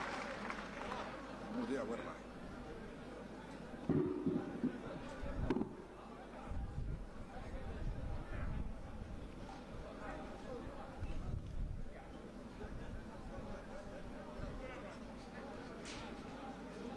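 A crowd of men murmurs nearby.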